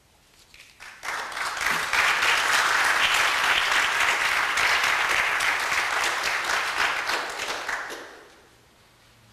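An audience claps loudly in a large hall.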